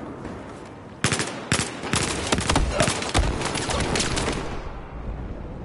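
Rapid bursts of gunfire crack loudly.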